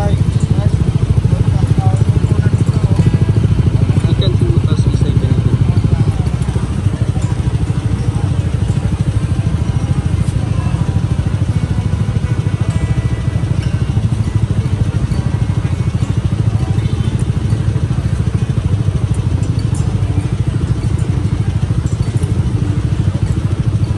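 A crowd of men and women chats in the background outdoors.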